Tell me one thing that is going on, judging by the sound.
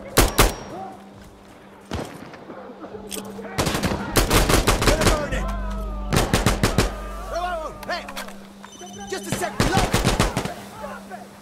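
Rapid gunshots ring out in bursts.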